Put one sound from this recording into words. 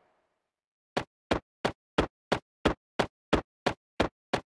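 Footsteps tap in a quick, even rhythm.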